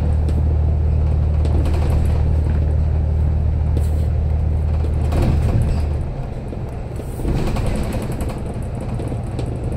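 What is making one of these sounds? A vehicle's engine hums steadily from inside, dropping in tone at about six seconds.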